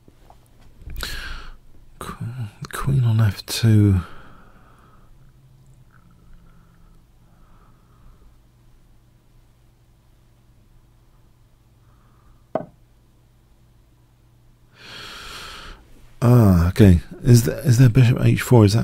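A middle-aged man talks casually into a close microphone.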